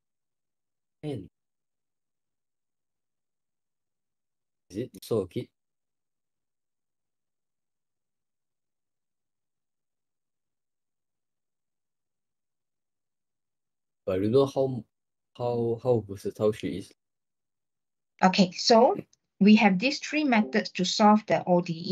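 A man speaks calmly in short bursts through an online call.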